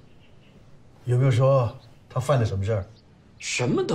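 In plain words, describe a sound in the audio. A middle-aged man asks a question sharply.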